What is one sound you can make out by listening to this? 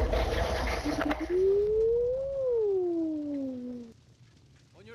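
A fire crackles and roars as debris falls.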